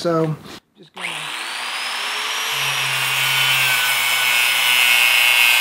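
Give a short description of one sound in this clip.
An angle grinder whines loudly as it spins up and grinds metal.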